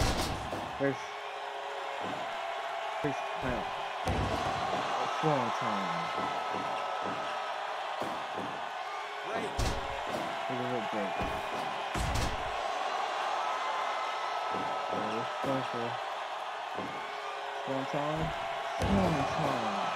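Heavy bodies thud onto a springy ring mat.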